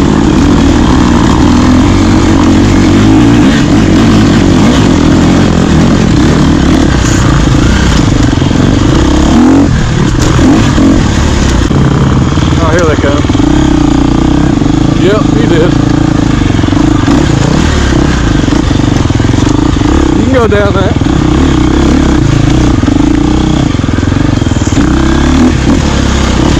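A dirt bike engine revs loudly up close.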